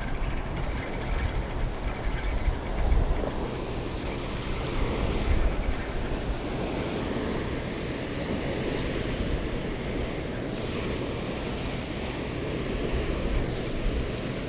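Water rushes steadily over a nearby dam.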